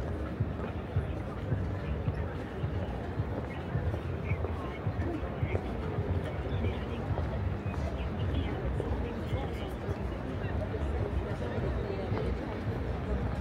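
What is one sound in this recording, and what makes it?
Footsteps tap on cobblestones at a steady walking pace.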